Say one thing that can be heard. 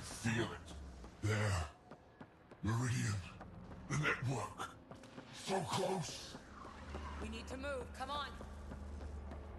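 Footsteps run quickly across a hard metal floor.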